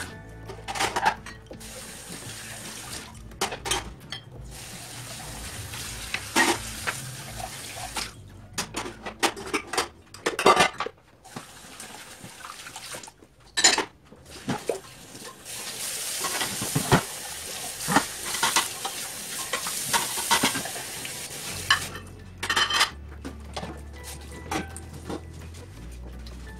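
Dishes clatter and clink against each other.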